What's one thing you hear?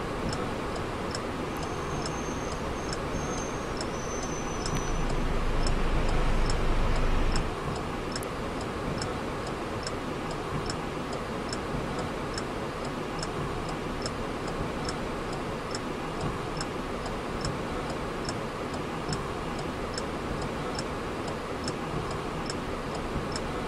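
A turn signal ticks in an even rhythm.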